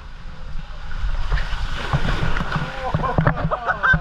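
Water splashes loudly from a waterfall into a pool.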